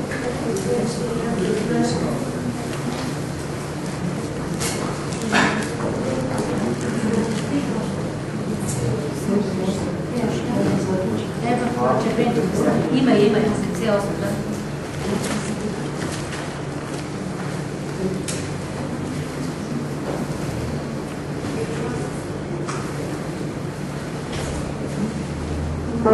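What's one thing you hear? Men and women murmur and talk quietly among themselves in a room with a slight echo.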